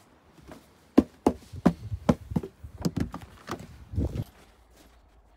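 A door handle clicks and rattles.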